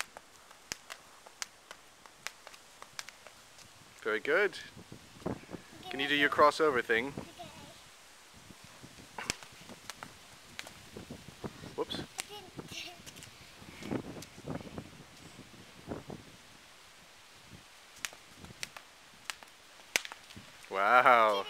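A skipping rope slaps on pavement in a quick rhythm.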